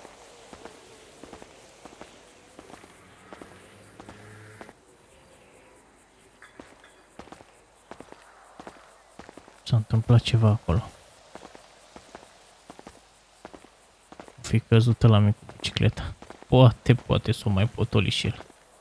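Footsteps scuff steadily on pavement.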